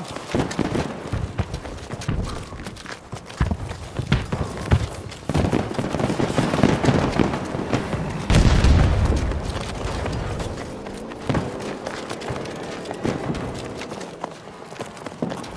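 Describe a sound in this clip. Footsteps thud quickly on hard ground as someone runs.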